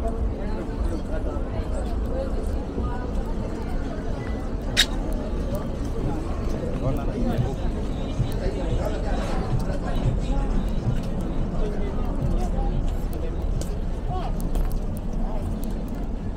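A crowd of people chatters along a busy street.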